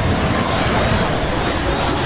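A flamethrower roars.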